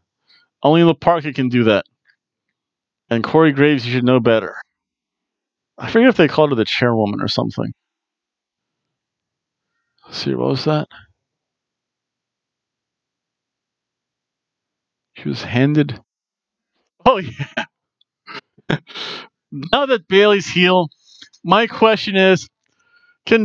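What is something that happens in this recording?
A middle-aged man talks with animation into a headset microphone, in short bursts with pauses.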